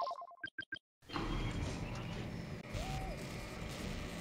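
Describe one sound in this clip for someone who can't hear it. Game machinery rumbles and hums steadily.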